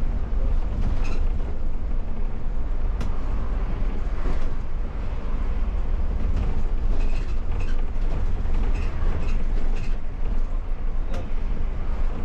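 A bus body rattles and clicks over the road.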